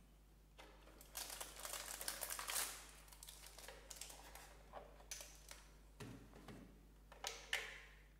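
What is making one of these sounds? A plastic tray crinkles and clatters as it is handled.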